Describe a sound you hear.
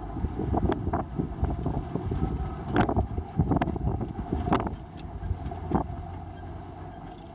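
Wind buffets past an open car window.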